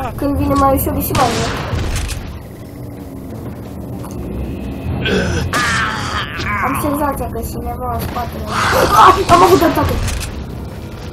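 A shotgun fires loud blasts.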